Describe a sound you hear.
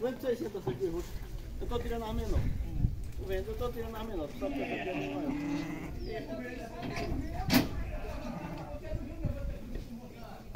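Men talk loudly with animation close by.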